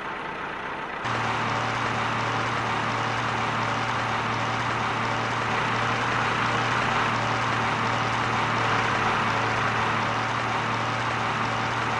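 A digger's engine rumbles steadily.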